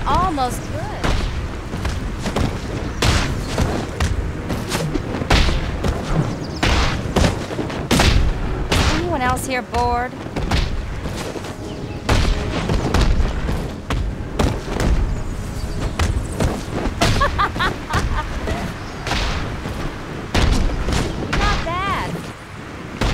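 Men grunt and shout as blows hit them.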